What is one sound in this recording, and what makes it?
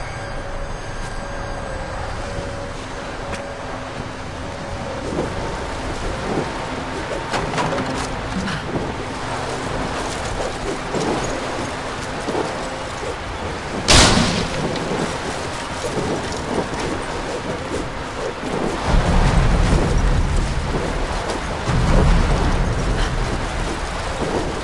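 Wind howls steadily.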